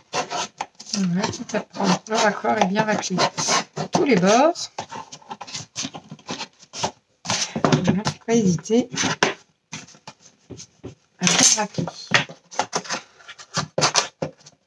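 Stiff card rustles and taps as a box is handled.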